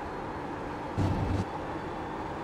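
Tyres rumble briefly over a kerb.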